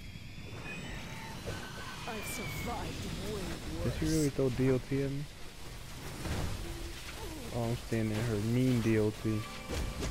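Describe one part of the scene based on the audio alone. Electricity sizzles and crackles.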